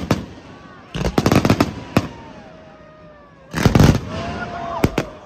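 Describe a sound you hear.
Crackling fireworks sizzle and pop.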